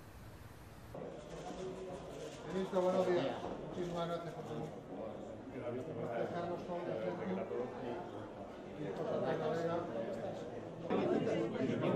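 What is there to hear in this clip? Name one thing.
Men greet each other with friendly chatter nearby.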